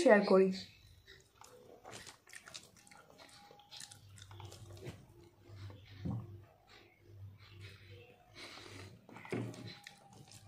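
A young woman chews food close by with soft smacking sounds.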